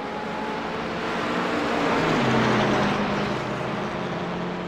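Cars rush past close by, roaring loudly.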